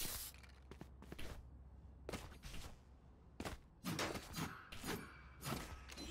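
Quick footsteps patter on a hard floor.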